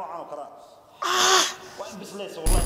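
A man groans and cries out in distress close by.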